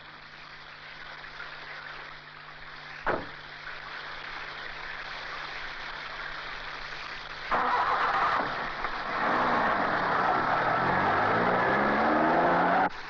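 Heavy rain pours down outdoors.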